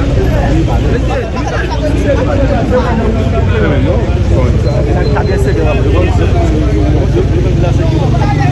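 A crowd of men and women shout and talk excitedly outdoors.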